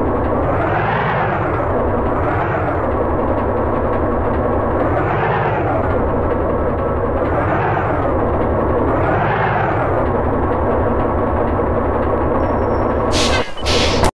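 A truck engine rumbles, its pitch rising and falling again and again.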